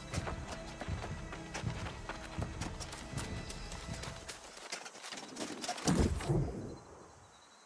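Footsteps crunch quickly through tall grass.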